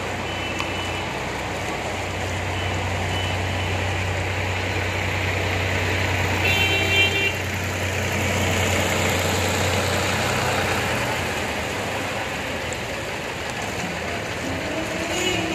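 Water splashes and sloshes steadily.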